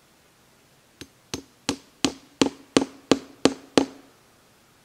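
A hammer taps against a tree trunk in a quickening, steady rhythm.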